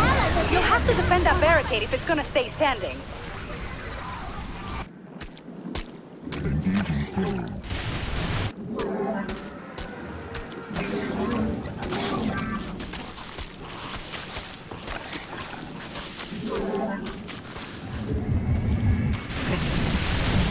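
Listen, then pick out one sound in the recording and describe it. Rapid weapon fire and explosions crackle in a battle.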